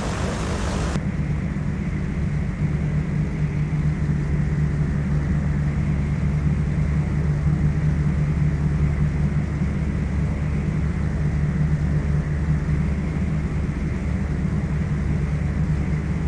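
A propeller engine hums, muffled, from inside a cockpit.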